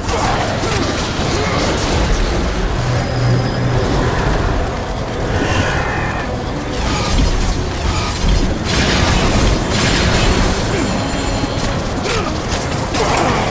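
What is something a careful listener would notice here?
A blade slashes through the air with a whoosh.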